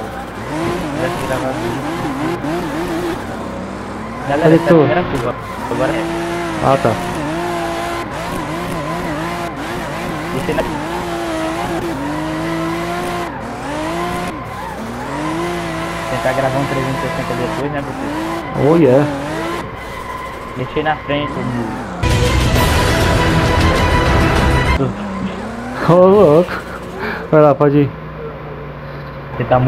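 A car engine revs hard, rising and dropping in pitch as the gears change.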